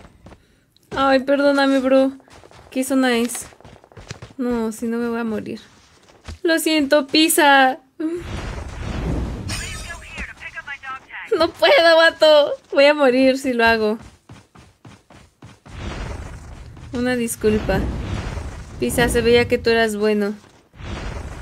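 A young woman talks with animation into a microphone close by.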